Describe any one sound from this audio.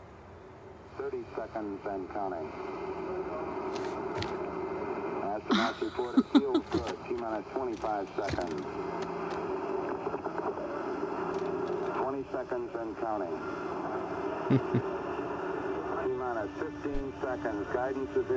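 A young man talks and laughs close to a microphone.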